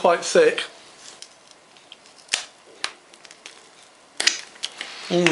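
Crackers clatter onto a metal tray.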